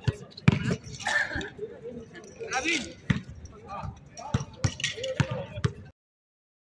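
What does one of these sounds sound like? A basketball bounces hard on an outdoor court.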